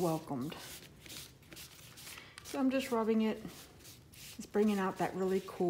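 Paper towel rustles and crinkles under rubbing hands.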